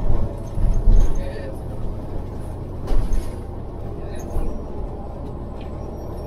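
A vehicle engine rumbles steadily from inside a moving car.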